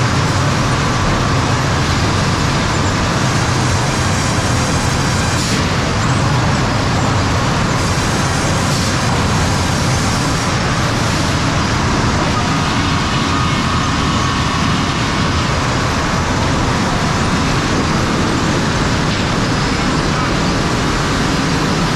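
Industrial machinery roars loudly and steadily.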